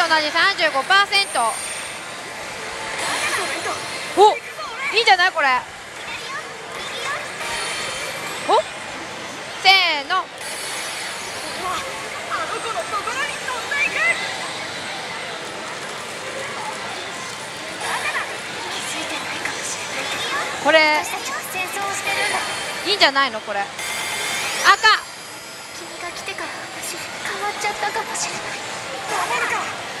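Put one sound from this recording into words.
A slot machine plays loud electronic music and sound effects.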